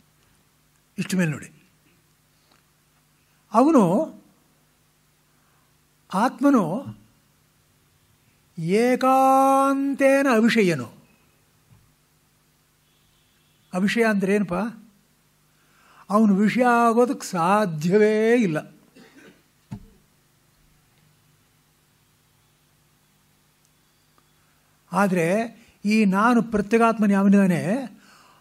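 A man chants in short melodic phrases, with pauses between them.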